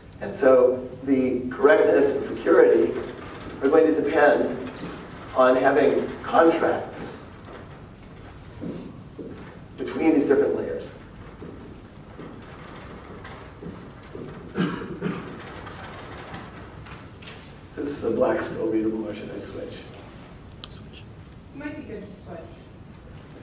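A man lectures calmly in a slightly echoing room, pausing often.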